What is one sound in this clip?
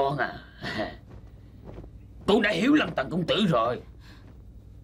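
A man speaks firmly, close by.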